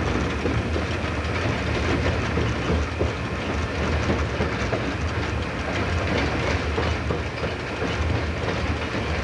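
Train wheels click and clatter over rail joints and points.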